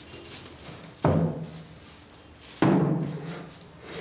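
A small wooden table thuds down onto a hard floor.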